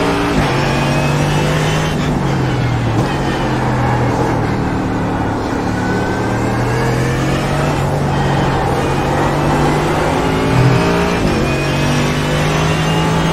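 A racing car engine roars, dropping in pitch through downshifts and rising again as it speeds up.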